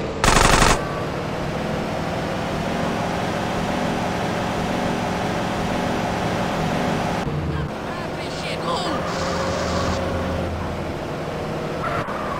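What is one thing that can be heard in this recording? A car engine hums as a car drives along.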